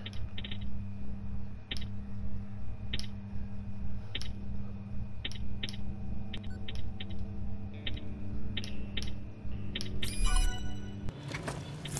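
Short electronic beeps sound in a quick, uneven rhythm.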